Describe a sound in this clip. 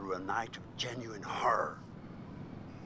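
A middle-aged man speaks calmly and gravely, close by.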